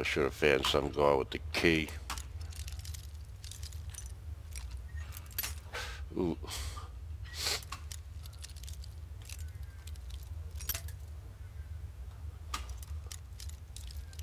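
A lockpick snaps with a sharp metallic click.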